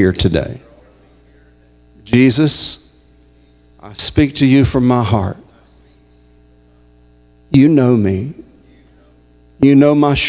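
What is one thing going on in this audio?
A man speaks into a microphone in short bursts with pauses, in a reverberant hall.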